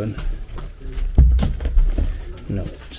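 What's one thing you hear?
A hand thumps against a wooden door.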